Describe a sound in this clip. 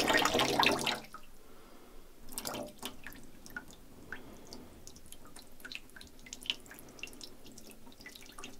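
A finger scrapes wet grounds out of a cup with soft clicks.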